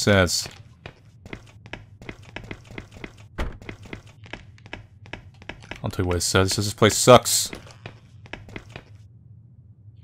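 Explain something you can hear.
Light footsteps patter on a hard floor.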